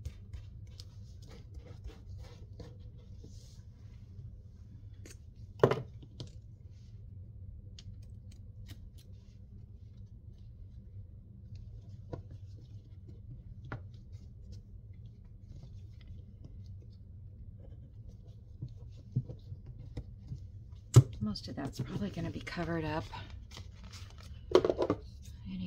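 Paper rustles and crinkles as hands press it flat.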